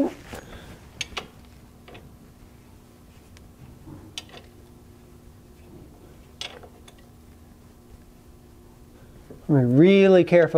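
A wrench clicks against metal bolts.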